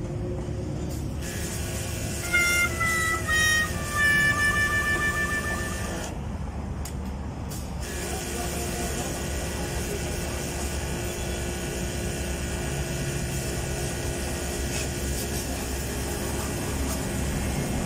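A pressure washer sprays water with a steady hiss.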